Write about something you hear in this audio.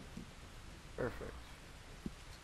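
A young man talks briefly into a microphone.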